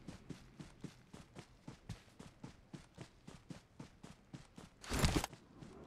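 Footsteps thud quickly through grass.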